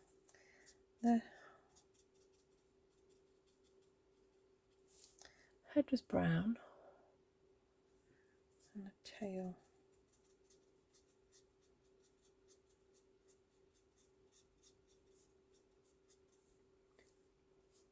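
A marker pen scratches lightly across paper.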